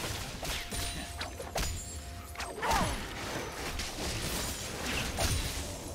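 Game spell effects whoosh and crackle in a fight.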